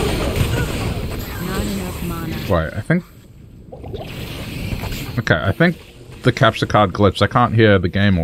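Flames burst and crackle during a fight.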